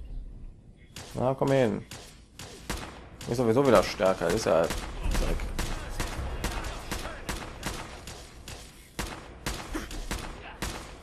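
An automatic gun fires in rapid bursts.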